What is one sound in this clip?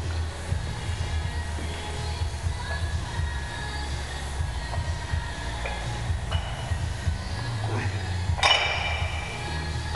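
A man grunts and breathes hard with effort.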